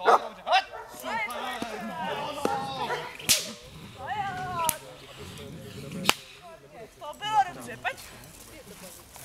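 A dog barks excitedly.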